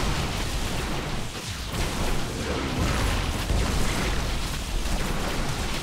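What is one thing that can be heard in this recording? Weapons fire and blasts crackle in a game battle.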